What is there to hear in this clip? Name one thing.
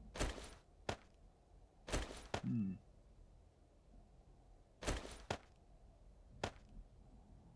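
Short menu clicks and swishes sound now and then.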